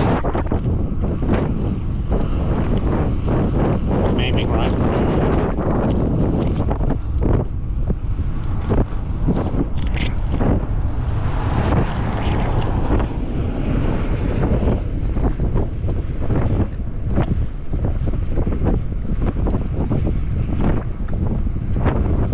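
Wind buffets loudly and roughly against a moving bike.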